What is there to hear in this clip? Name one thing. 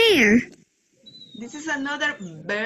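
A young child speaks through an online call.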